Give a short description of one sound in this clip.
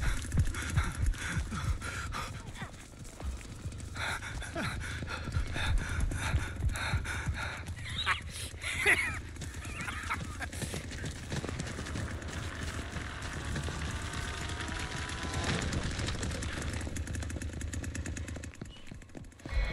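Footsteps run quickly over wooden floors and ground.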